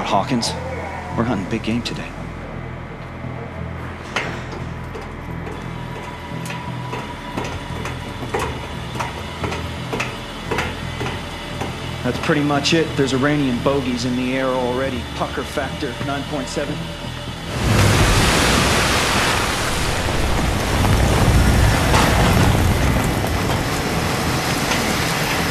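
Boots clang on metal stairs.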